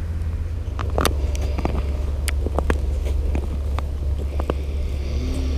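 Boots crunch and scrape on ice.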